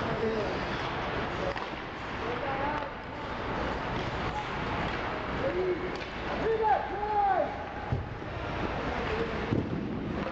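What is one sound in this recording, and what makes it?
Young players shout across the ice.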